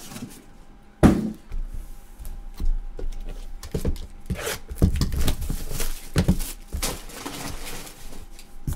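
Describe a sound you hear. Gloved hands handle shrink-wrapped card boxes, crinkling the plastic.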